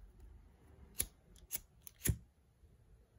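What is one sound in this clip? A lighter clicks as it is struck.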